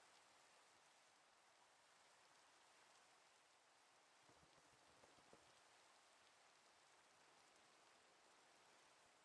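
Rain falls steadily with a soft, even hiss.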